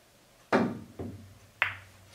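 Pool balls clack against each other.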